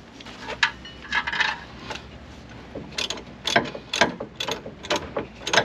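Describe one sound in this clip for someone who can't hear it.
Metal parts clink and clank close by.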